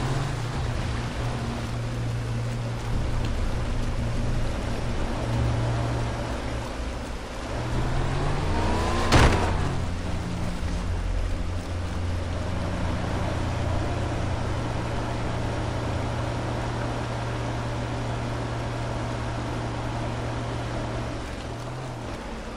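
A jet ski engine hums steadily and revs.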